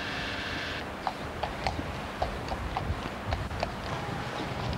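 A horse's hooves clop on pavement.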